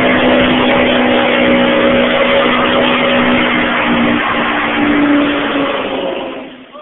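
A car engine roars loudly at high revs.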